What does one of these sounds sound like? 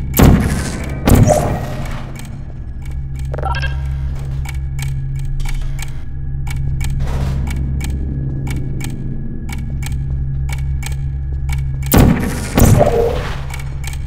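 A sci-fi gun fires with a sharp, crackling whoosh.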